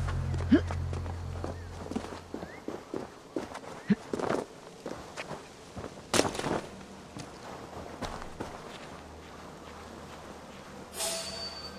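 Footsteps crunch on leaves and twigs.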